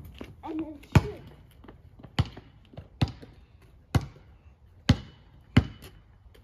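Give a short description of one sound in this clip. A basketball bounces on hard pavement.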